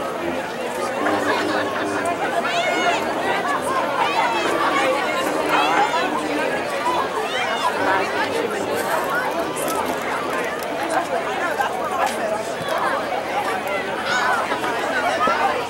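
Drums beat in a marching band.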